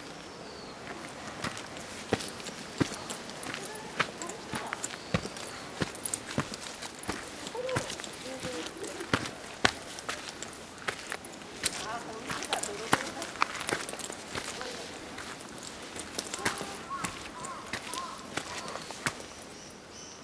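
Footsteps crunch and squelch on a wet, muddy track.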